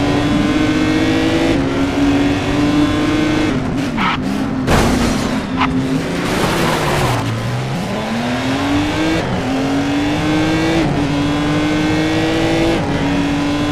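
A race car engine roars, revving up through the gears and dropping in pitch as it shifts.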